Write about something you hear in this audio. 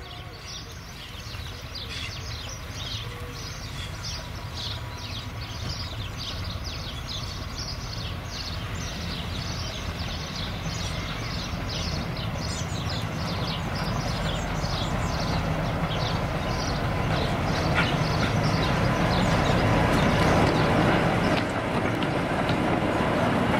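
A diesel-hydraulic locomotive hauling coaches approaches, its engine rumble growing louder as it draws close.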